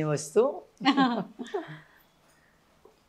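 An older woman laughs softly.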